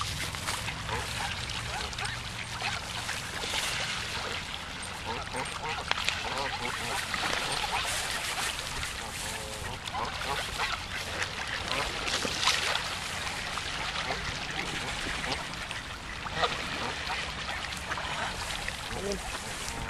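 Ducks quack on water nearby.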